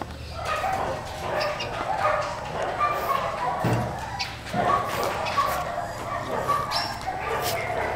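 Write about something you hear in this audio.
A puppy snorts and grunts softly.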